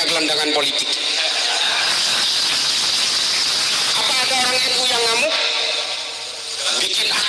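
A man speaks with animation into a microphone, heard through a loudspeaker with hiss.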